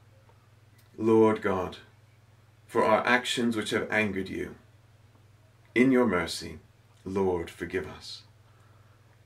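A man reads out calmly and closely into a microphone, in short phrases with pauses.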